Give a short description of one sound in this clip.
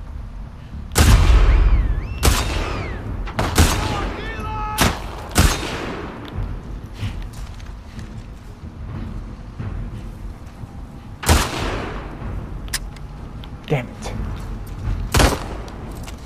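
Rifle shots ring out loudly, several times.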